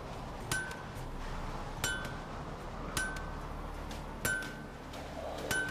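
A hammer strikes an anvil with ringing metallic clangs at a slow, steady pace.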